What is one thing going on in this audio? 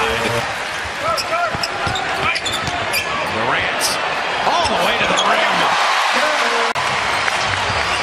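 A large crowd cheers and murmurs in an echoing arena.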